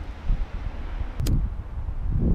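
A lighter clicks and flicks.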